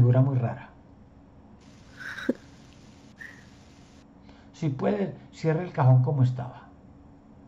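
A middle-aged man speaks through an online call, in short bursts.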